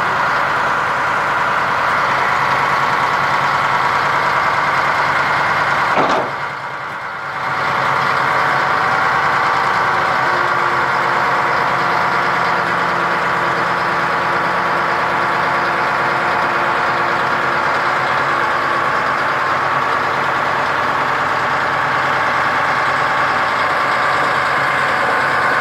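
A bulldozer's diesel engine rumbles steadily at idle nearby.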